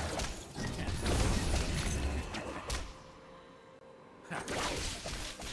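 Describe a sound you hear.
Game combat effects crash, zap and whoosh in quick bursts.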